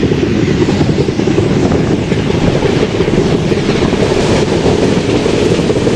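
Two trains rumble past each other on the rails at speed.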